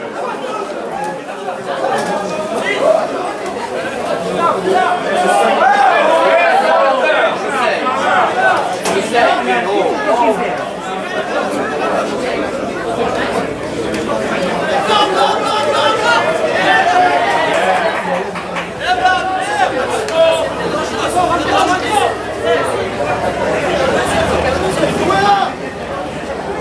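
Rugby players shout and call to each other outdoors.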